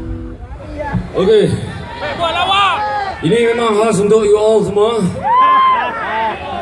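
A man sings into a microphone over loud speakers.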